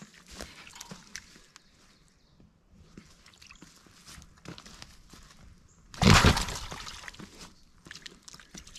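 A hog splashes and wades through shallow mud.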